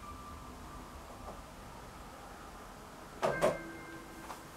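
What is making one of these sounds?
A keyboard plays soft notes.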